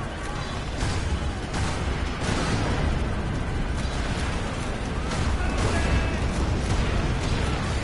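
Explosions boom and crackle repeatedly.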